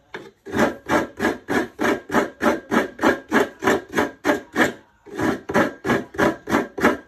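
Hands rhythmically rub and squeeze grated coconut in a bowl.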